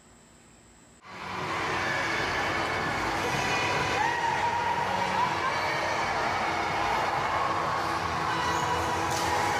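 A crowd of young people chatter in a large echoing hall.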